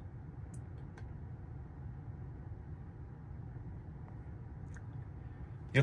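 A steering wheel button clicks softly.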